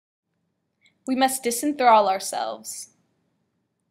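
A young girl speaks with animation nearby.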